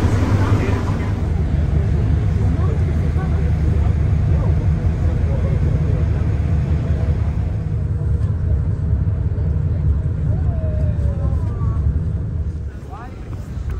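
Wind rumbles loudly outdoors.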